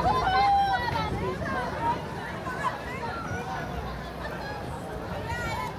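A crowd of spectators chatters and calls out outdoors.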